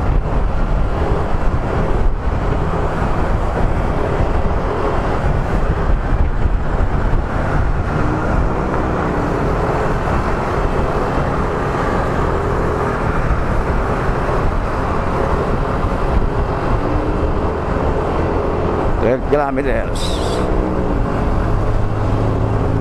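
A motorcycle engine hums steadily as it rides through traffic.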